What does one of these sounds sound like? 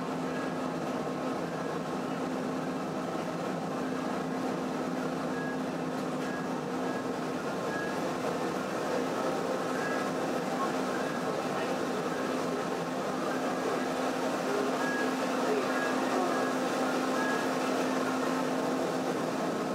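Water washes against a ship's hull.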